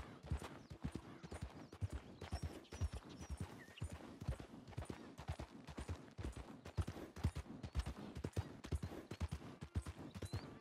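Horse hooves thud steadily on soft ground at a trot.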